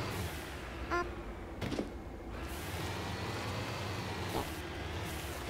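A vehicle thumps as it lands on rough ground.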